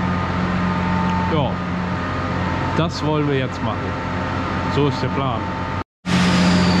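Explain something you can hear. A tractor engine idles with a steady low hum.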